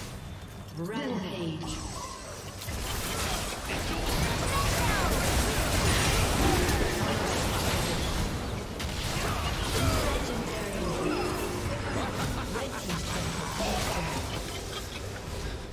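Video game spell effects whoosh, zap and crackle during a battle.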